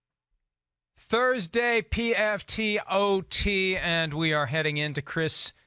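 A middle-aged man speaks clearly and with emphasis into a close microphone.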